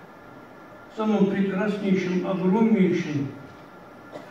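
A man chants through loudspeakers in a large echoing hall.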